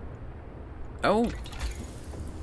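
A soft interface chime sounds as a menu opens.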